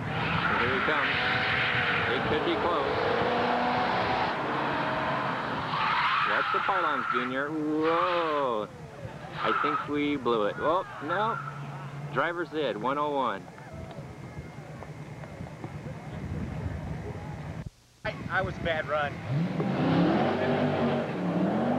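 A car engine revs hard, rising and falling in pitch as the car weaves.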